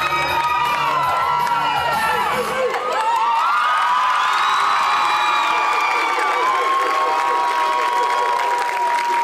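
A chorus of young singers sings loudly in a large hall.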